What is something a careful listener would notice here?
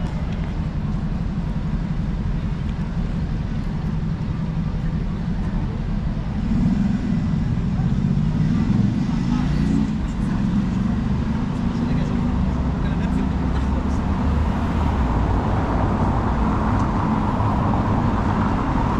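Traffic rumbles along a city street nearby.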